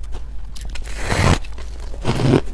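A young woman bites into soft cake close to a microphone.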